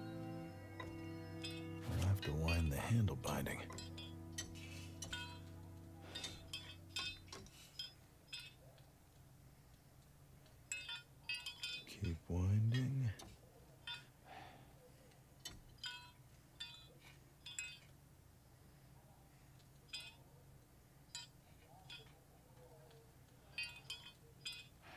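Metal parts click and snap together.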